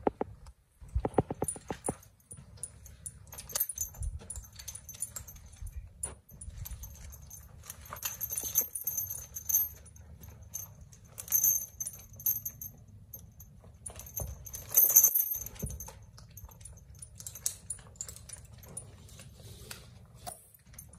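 Harness buckles and metal rings jingle and clink.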